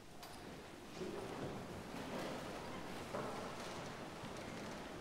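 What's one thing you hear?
A group of people recite words together in an echoing hall.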